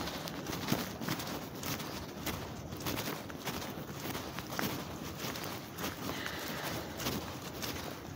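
Footsteps squelch steadily on a wet, muddy path.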